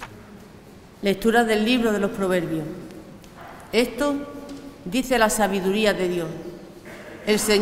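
A woman speaks clearly into a microphone, reading out.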